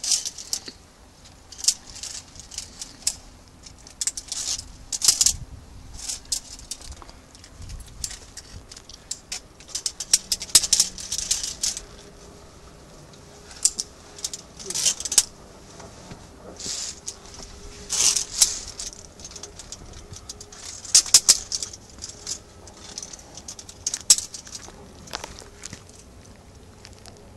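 Metal carabiners clink and scrape against a steel cable.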